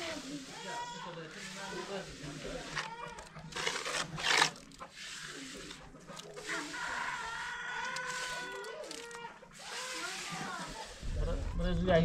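A trowel scrapes wet cement across a wall.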